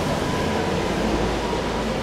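A suitcase rolls along on its wheels.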